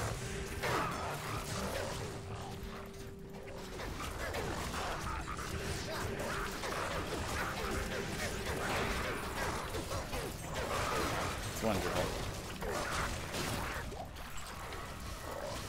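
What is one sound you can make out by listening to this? Game spells crackle and burst in quick bursts.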